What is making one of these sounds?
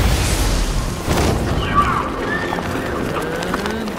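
Wind rushes past during a glide.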